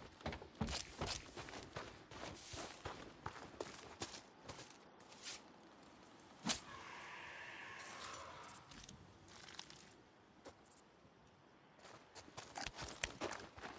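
Footsteps swish through tall grass.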